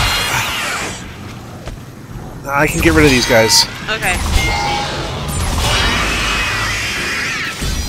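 A weapon fires short, sharp energy shots.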